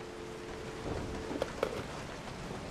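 A telephone handset is set down with a clunk.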